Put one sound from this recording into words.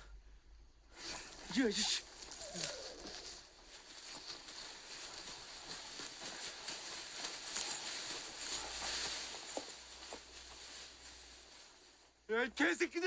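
Tall reeds rustle and swish as people push through them.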